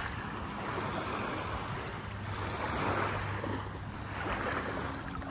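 Gentle waves lap softly outdoors in a light breeze.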